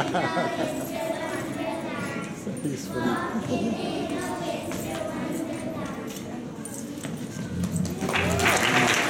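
A group of young children sing together.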